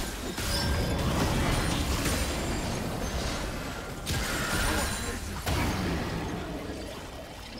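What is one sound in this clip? Magical spell effects whoosh and crackle in bursts.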